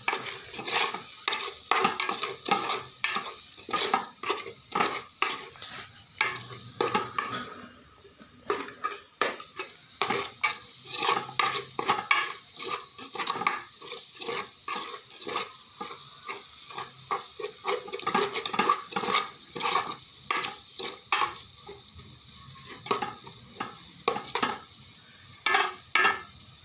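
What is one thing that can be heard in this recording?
A metal spoon scrapes and clinks against a metal pot while stirring.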